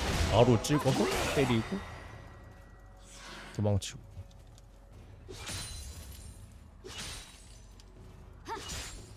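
Magic spell effects whoosh and burst in short bursts.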